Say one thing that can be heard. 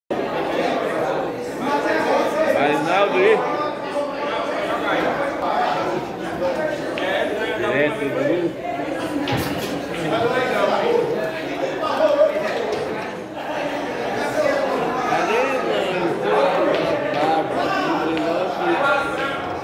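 Several men talk with animation nearby.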